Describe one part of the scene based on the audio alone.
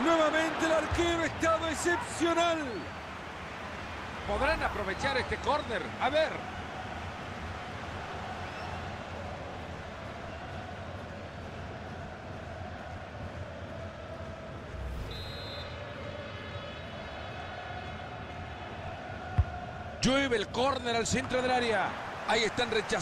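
A large crowd roars steadily in a stadium.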